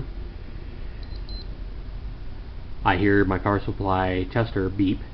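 A hard drive hums faintly as it spins.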